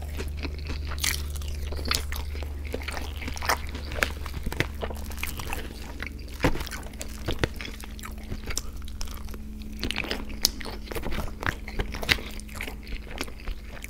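A fork clinks and scrapes against a plastic tray.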